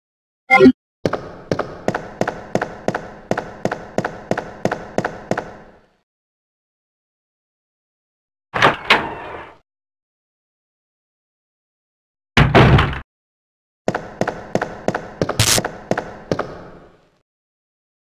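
Footsteps tap steadily on a hard floor, with a faint echo.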